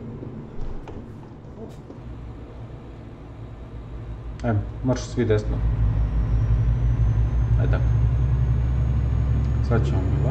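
A truck engine drones low and grows louder.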